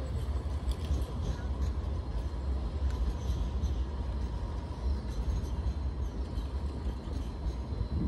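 A tram rolls by nearby.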